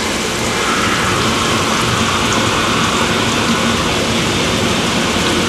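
Water sprays hard inside a metal tank, hissing and splashing steadily.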